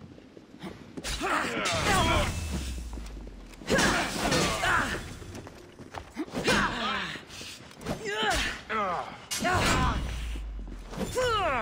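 Metal blades clash and strike in a fast fight.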